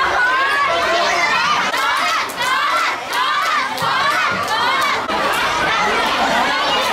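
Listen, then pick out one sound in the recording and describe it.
A crowd of teenagers cheers and shouts with animation.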